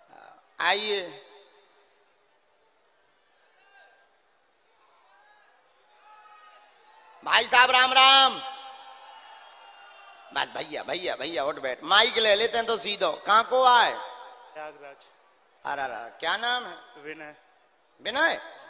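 A young man sings through a microphone in a large echoing space.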